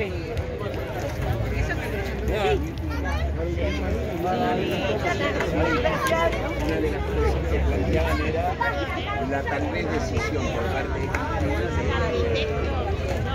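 A crowd of men and women talks and chatters outdoors.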